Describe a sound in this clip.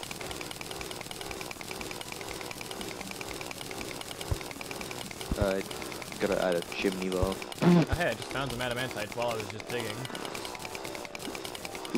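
A drill buzzes steadily with a fast, rattling pulse as it grinds through rock.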